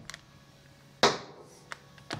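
A metal wheel nut clinks on a hard surface.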